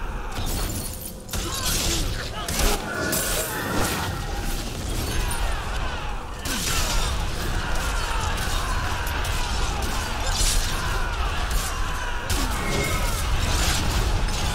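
Weapons strike enemies with sharp, rapid hits.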